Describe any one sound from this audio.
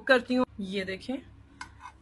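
A sandwich sizzles in a frying pan.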